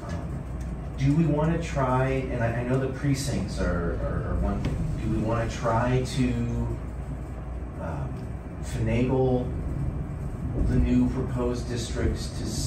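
A man speaks calmly through a microphone in a room.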